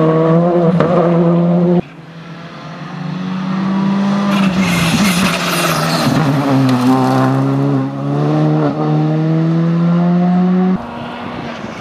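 A rally car engine roars at high revs, shifting gears as it speeds past.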